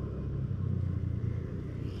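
A motorcycle engine hums as it passes by.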